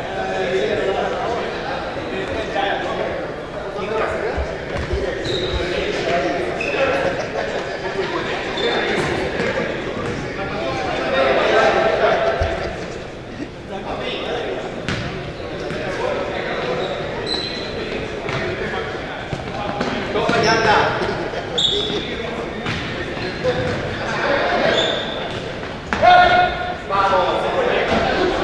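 Players shout and call to each other across an echoing indoor hall.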